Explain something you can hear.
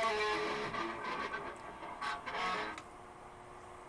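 An electric guitar plays a few notes.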